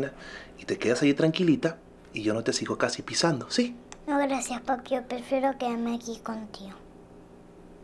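A man speaks softly and playfully to a young girl, close by.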